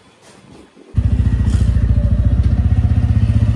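A motorcycle engine rumbles loudly as it rides off.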